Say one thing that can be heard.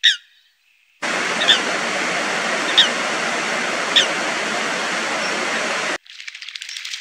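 Water rushes and roars over a weir.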